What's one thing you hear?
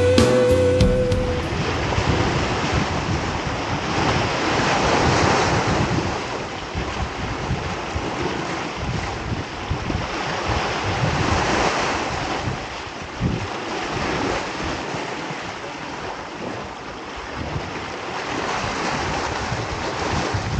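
Waves splash and foam over rocks close by.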